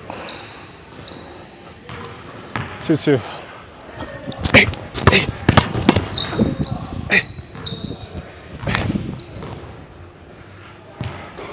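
A ball clangs off a basketball rim.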